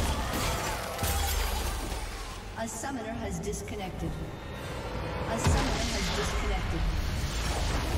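Game magic effects whoosh and crackle in quick bursts.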